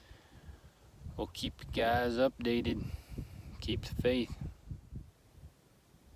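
A young man speaks quietly and close to the microphone.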